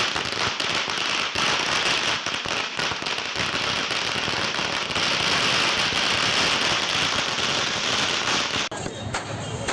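Firecrackers crackle and pop loudly outdoors.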